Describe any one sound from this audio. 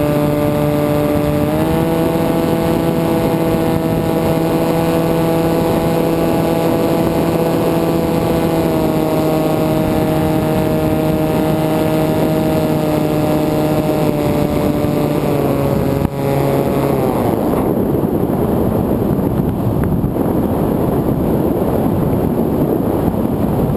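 Wind rushes loudly past in flight.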